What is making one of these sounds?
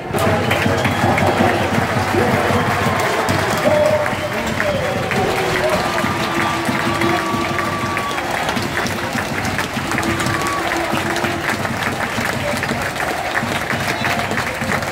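A large stadium crowd cheers and chants loudly outdoors.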